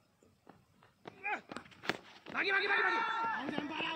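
A cricket bat strikes a leather ball.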